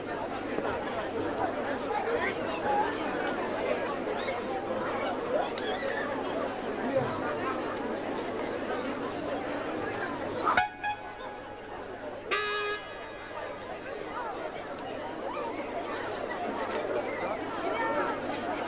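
A crowd of people chatters loudly.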